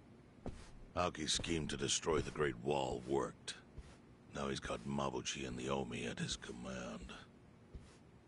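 A man speaks in a low, serious voice, close by.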